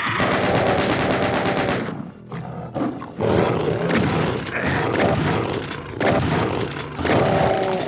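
A chainsaw revs and grinds.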